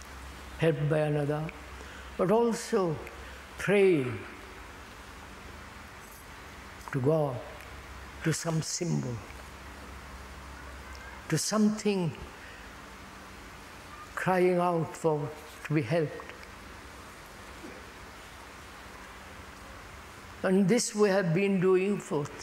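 An elderly man speaks slowly and calmly, with long pauses, close to a lapel microphone.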